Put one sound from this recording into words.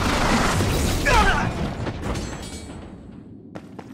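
A crate smashes in a burst of debris.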